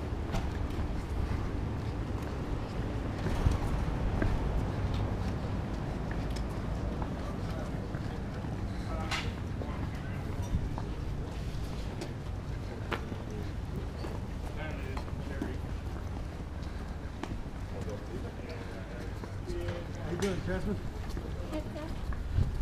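Gear and equipment rattle as men walk.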